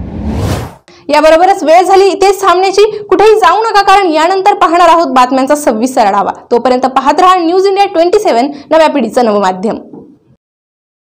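A young woman speaks steadily and clearly into a microphone, like a news presenter.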